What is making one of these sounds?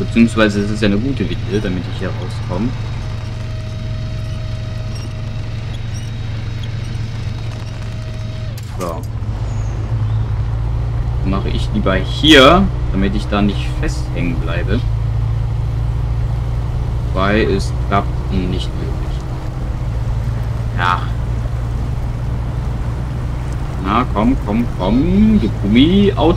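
A pickup truck's engine drones under load as it drives slowly.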